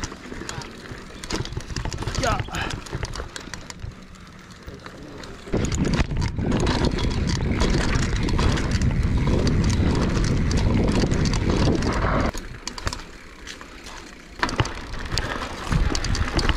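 Wind rumbles loudly across a bicycle rider's microphone outdoors.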